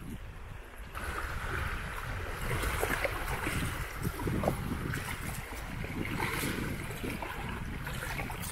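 A fishing net swishes and splashes in shallow water.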